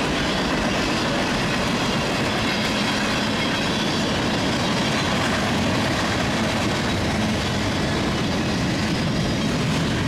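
A freight train rumbles past close by, its wheels clattering steadily on the rails.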